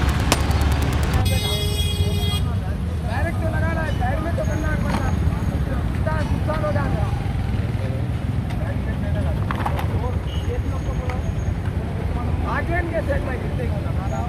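Road traffic rumbles steadily.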